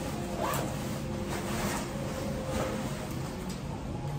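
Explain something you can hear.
A bag rustles as a man handles it.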